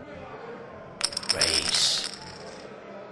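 Poker chips clatter briefly as a bet is placed.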